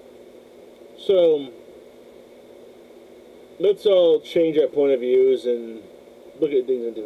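A man speaks casually close to a microphone, in short bursts.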